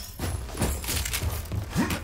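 Footsteps clatter on metal stairs.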